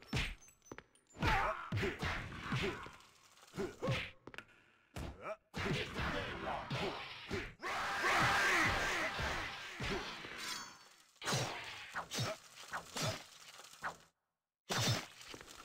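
Punches and kicks thud in a fight.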